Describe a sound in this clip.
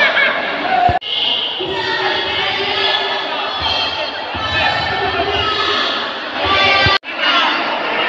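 A crowd of young men chatters and calls out.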